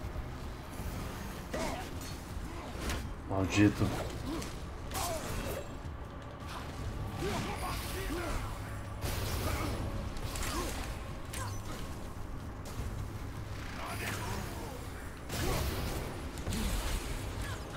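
Heavy weapon blows thud and clash in a fight.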